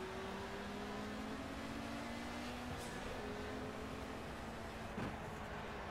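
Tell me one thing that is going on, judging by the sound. Other racing car engines drone close ahead.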